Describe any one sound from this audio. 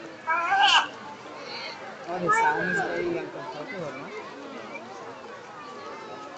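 A crowd of people chatters and calls out outdoors.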